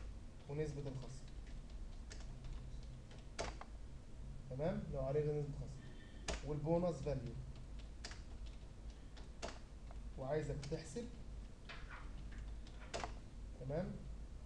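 Keyboard keys click in quick bursts.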